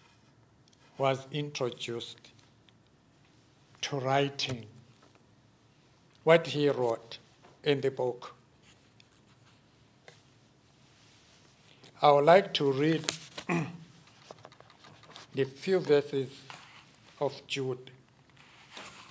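An elderly man speaks slowly and calmly into a microphone, with long pauses, in a slightly echoing room.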